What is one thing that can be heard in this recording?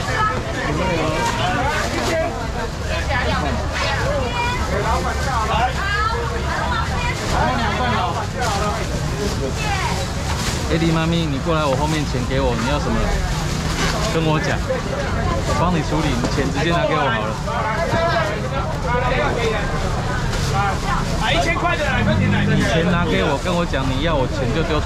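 A crowd of men and women chatter and call out all around, close by.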